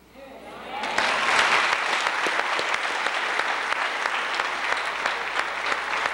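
A crowd of young people claps their hands.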